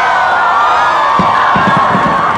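Fireworks bang and crackle overhead.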